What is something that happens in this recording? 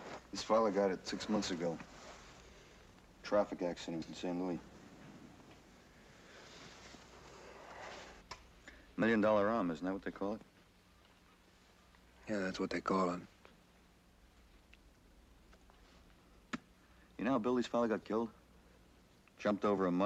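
A young man speaks quietly and tensely nearby.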